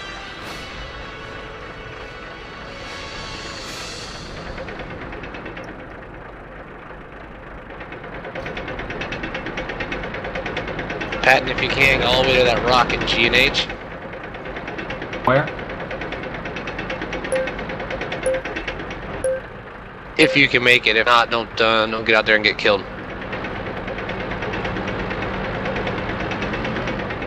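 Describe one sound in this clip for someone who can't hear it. A tank engine rumbles steadily at idle.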